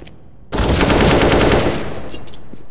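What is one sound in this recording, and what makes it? Rifle shots ring out in a rapid burst.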